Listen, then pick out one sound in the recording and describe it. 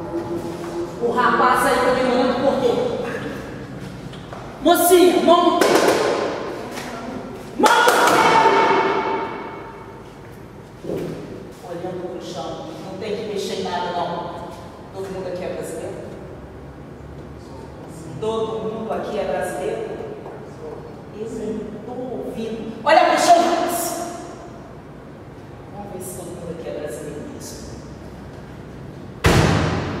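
Music plays from a loudspeaker in a large echoing room.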